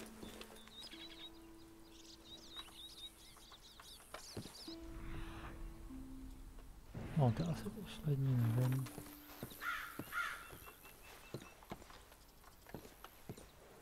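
Hands rummage through items in a wooden chest.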